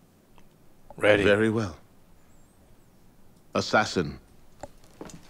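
A man speaks firmly, giving an order.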